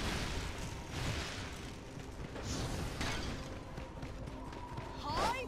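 Quick footsteps thud on soft ground.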